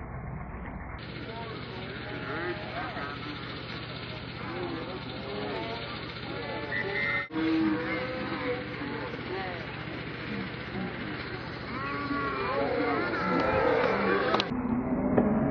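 Children shout and cheer outdoors.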